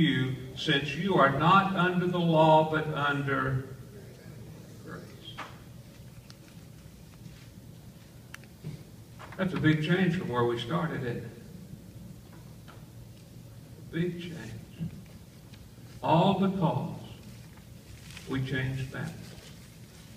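An elderly man speaks calmly, with pauses.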